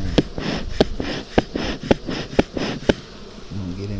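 Fingers tap and click against wooden hive frames.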